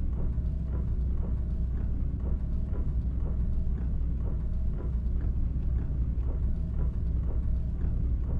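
A truck rumbles past close by.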